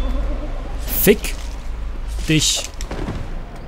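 Metal weapons clang and strike hard.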